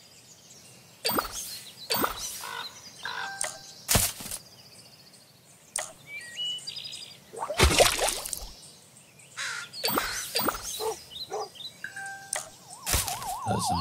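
Short game sound effects pop and chime.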